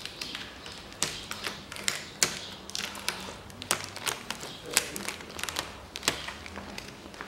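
A plastic backing film crinkles and peels away.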